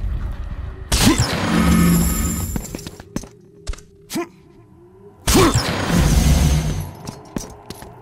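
A magic chest bursts open with a bright rushing whoosh.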